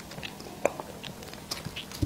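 A young woman sips a drink close to a microphone.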